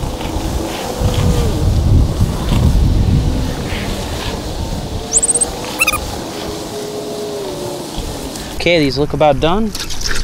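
Water sprays and trickles from a hose into water balloons.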